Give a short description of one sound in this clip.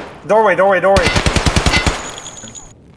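A rifle fires a rapid burst of shots that echo briefly.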